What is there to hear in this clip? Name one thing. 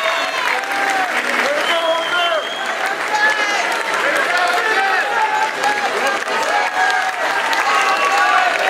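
A man speaks with animation through a microphone over loudspeakers in a large hall.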